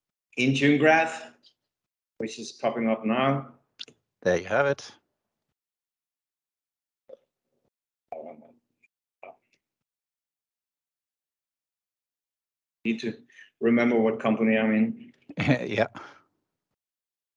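A young man talks casually over an online call.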